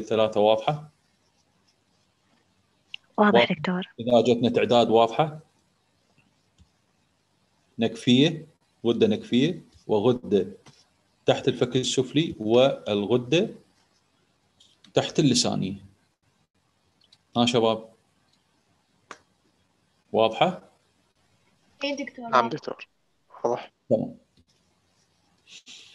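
A man speaks calmly through an online call, in bursts with pauses.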